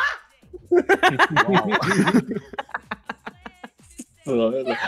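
A young woman laughs loudly into a microphone.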